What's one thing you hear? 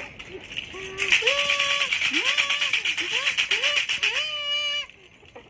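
A rattle is shaken quickly.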